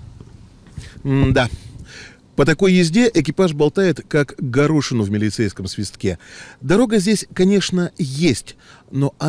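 A middle-aged man speaks with animation into a microphone, close by.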